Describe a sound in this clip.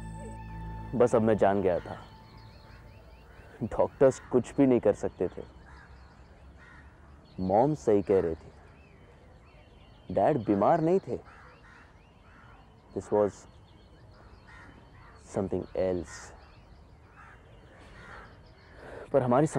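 A young man speaks in short, earnest phrases with long pauses, close by.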